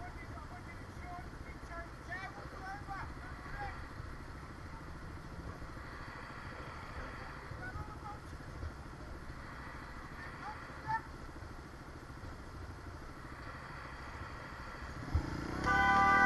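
A motorcycle engine idles at a standstill.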